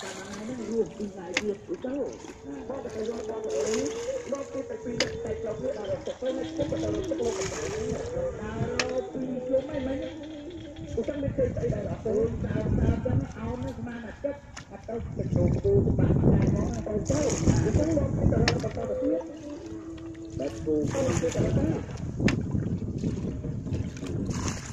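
Water splashes as a bucket scoops and pours it out.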